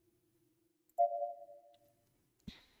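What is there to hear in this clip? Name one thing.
A soft electronic chime sounds once and fades.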